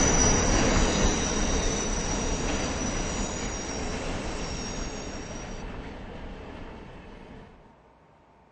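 A subway train rumbles along the track in a tunnel and fades away.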